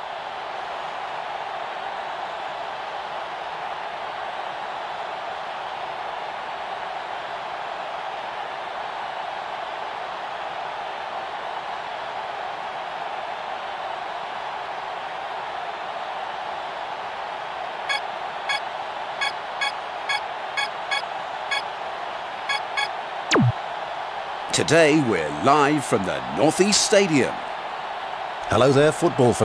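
A stadium crowd murmurs and roars steadily.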